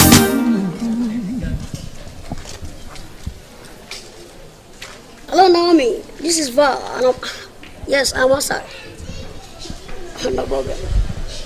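A young boy talks loudly and with animation into a phone, close by.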